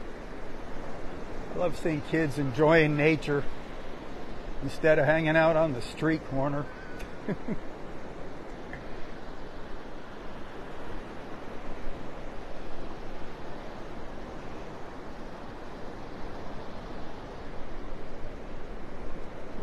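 Waves wash steadily onto the shore.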